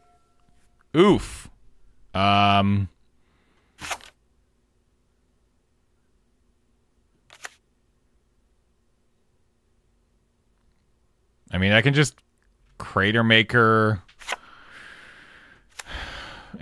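A man speaks casually into a close microphone.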